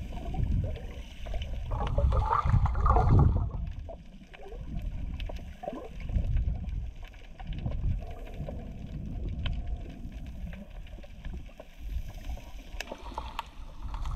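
Water rumbles and gurgles with a muffled, underwater sound.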